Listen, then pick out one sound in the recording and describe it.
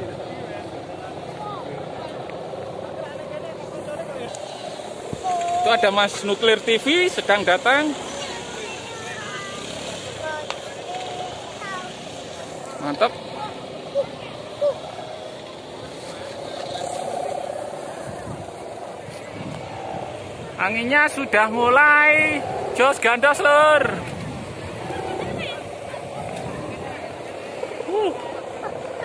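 A crowd of men and children talk and call out outdoors.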